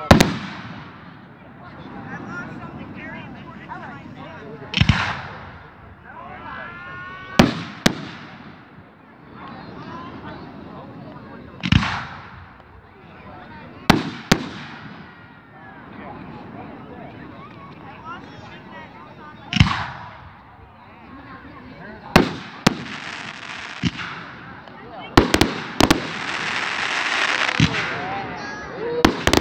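Fireworks burst with loud booms that echo away.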